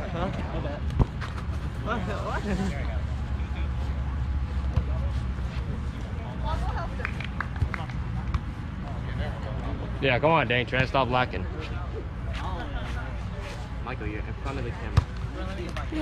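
A ball is struck with sharp thumps.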